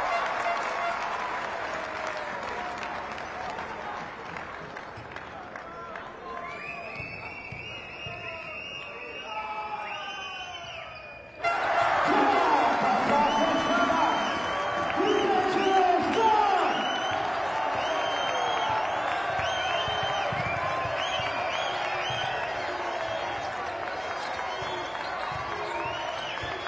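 A large indoor crowd murmurs and cheers.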